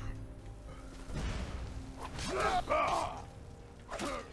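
A fire spell roars and crackles.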